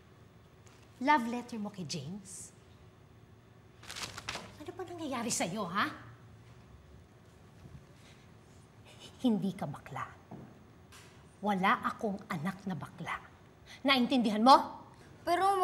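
A woman speaks urgently and emotionally, close by.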